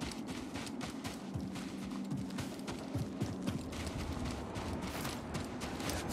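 Footsteps run quickly across sand and gravel.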